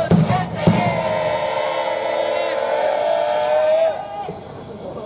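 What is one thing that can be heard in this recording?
A group of young women shout a long drawn-out cheer together outdoors.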